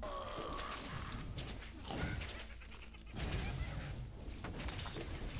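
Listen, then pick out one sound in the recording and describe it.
Weapons strike enemies with sharp hits.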